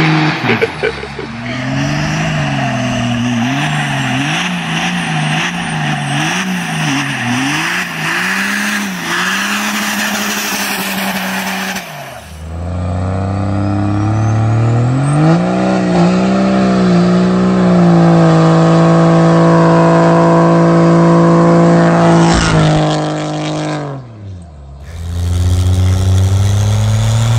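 A diesel truck engine revs up and down loudly.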